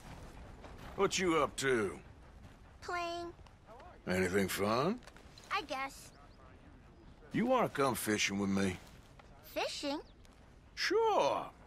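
A young boy speaks with animation nearby.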